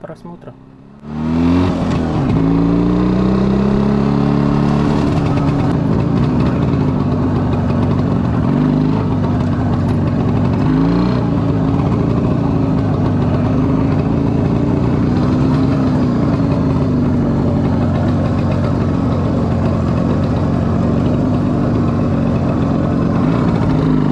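A motorcycle engine roars loudly close by, revving up and down as the bike rides.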